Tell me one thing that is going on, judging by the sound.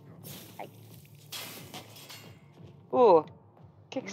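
Glass cracks.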